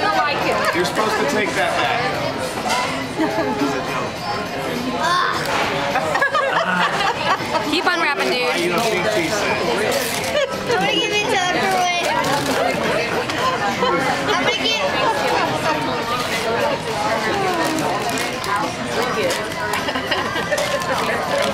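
Wrapping paper rustles and tears as a young boy unwraps a present.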